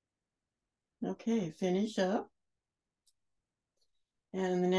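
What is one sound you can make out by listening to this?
A woman speaks calmly through a microphone, heard as in an online call.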